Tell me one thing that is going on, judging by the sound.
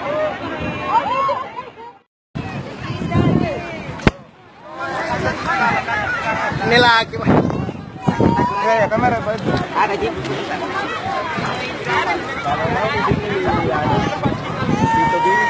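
A crowd of men and women shout and call out in alarm outdoors.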